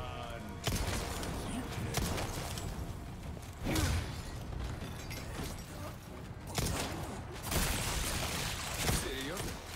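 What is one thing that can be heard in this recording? Gunshots go off in quick bursts.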